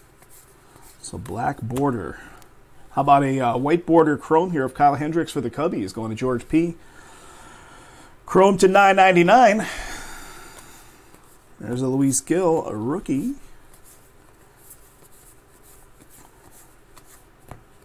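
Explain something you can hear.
Trading cards rustle and slide softly as they are flipped through by hand.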